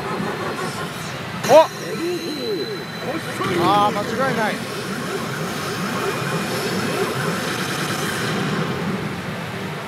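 A young man speaks with animation into a headset microphone.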